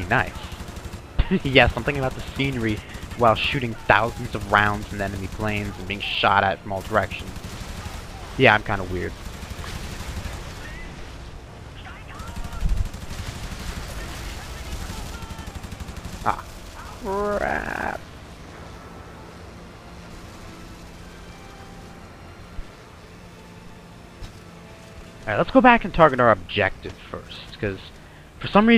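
A piston-engine fighter plane drones.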